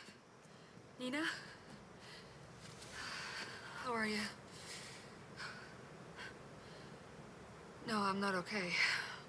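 A young woman talks and laughs softly, close by.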